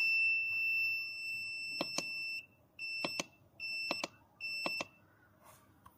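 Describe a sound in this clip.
An electronic device gives high, short beeps as its buttons are pressed.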